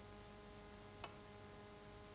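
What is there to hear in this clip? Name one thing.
A snooker cue strikes a ball with a sharp click.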